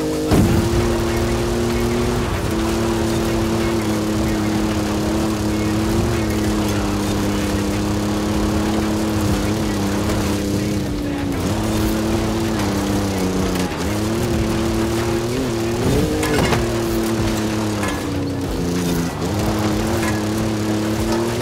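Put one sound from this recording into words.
Tyres rumble over rough dirt and grass.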